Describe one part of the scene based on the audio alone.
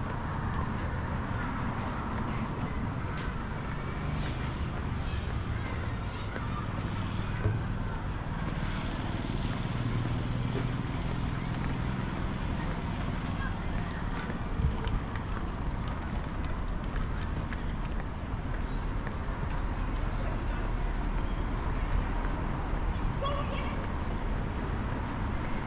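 Traffic rumbles steadily along a nearby city road, outdoors.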